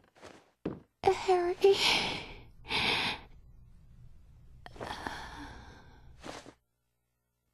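A young woman speaks weakly and in pain.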